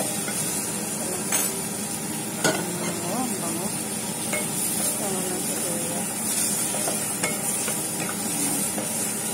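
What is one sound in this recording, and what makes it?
Food sizzles steadily in a hot pot.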